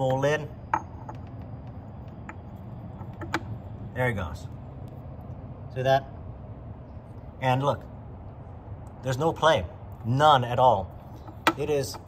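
A metal socket knocks lightly against a plastic cap.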